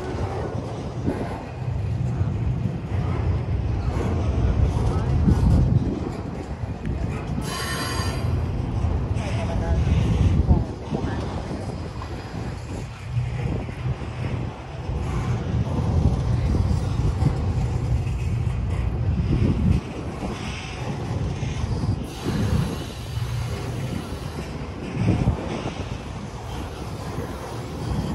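A long freight train rumbles steadily past close by, its wheels clattering on the rails.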